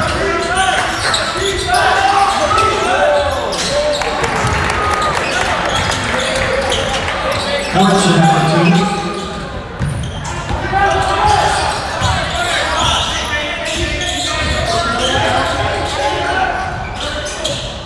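Sneakers squeak sharply on a gym floor.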